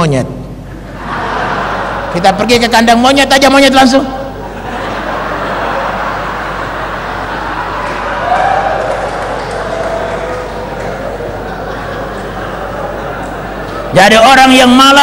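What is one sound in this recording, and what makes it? A large audience laughs and murmurs.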